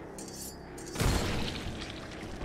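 A shotgun fires with a loud boom.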